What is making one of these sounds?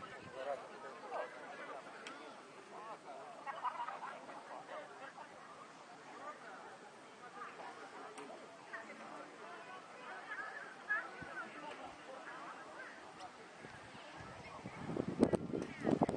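A crowd of people chatter at a distance outdoors.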